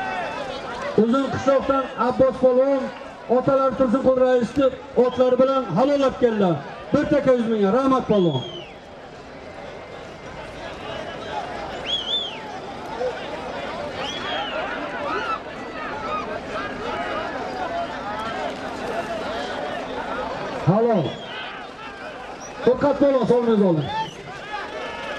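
A man shouts loudly and repeatedly close by.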